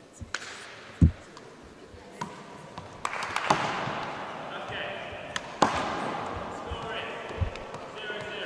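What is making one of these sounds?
A basketball bounces with dull thuds on a wooden floor in a large echoing gym.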